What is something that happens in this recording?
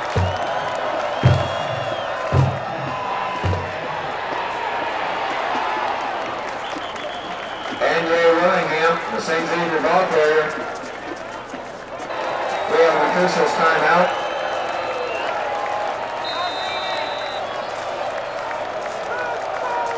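A large crowd murmurs and calls out outdoors.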